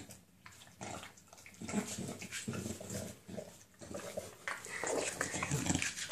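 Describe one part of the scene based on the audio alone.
A bulldog snorts and grunts close by.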